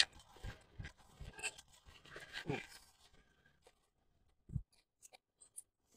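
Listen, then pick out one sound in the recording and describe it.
A stick scrapes and taps in soil.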